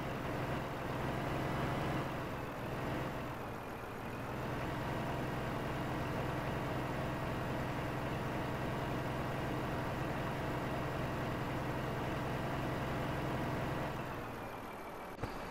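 A truck engine rumbles steadily as the truck drives slowly over rough ground.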